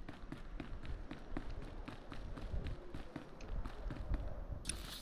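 Footsteps tread lightly on a hard floor.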